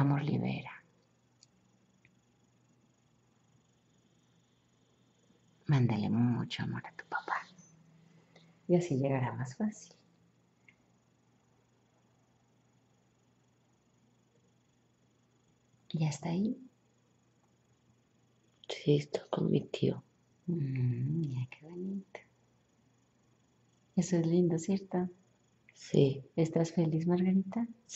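A young woman speaks softly close by, in short bursts with long pauses.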